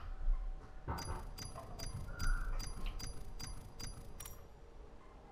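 Short electronic chimes tick in quick, even succession.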